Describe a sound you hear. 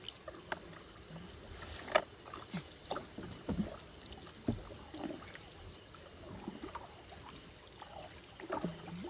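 Water splashes and drips as a fishing net is hauled out of the water.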